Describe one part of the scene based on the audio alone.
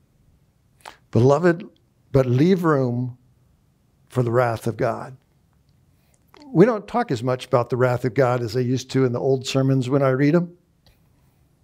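A middle-aged man speaks thoughtfully through a headset microphone, with pauses.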